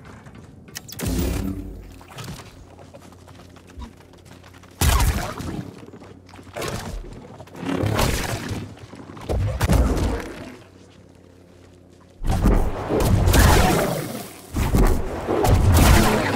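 An energy blade hums and whooshes as it swings.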